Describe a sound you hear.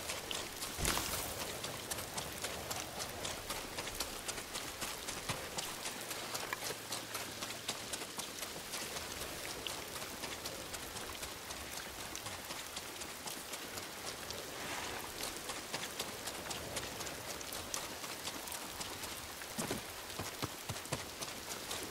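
Tall grass rustles and swishes against the legs.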